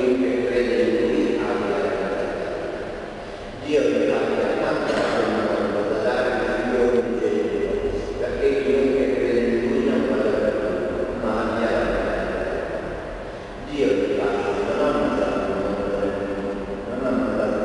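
A man sings in a large echoing hall.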